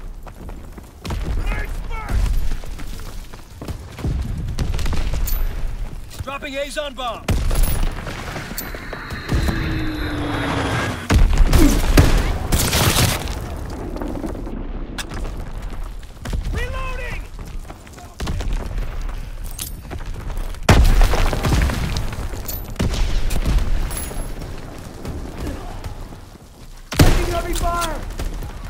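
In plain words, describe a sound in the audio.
A pump-action shotgun fires shots.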